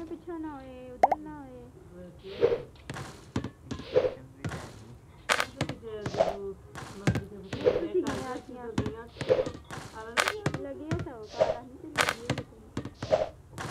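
A basketball bounces repeatedly.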